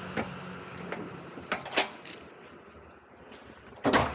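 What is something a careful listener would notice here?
A sliding glass door rattles open.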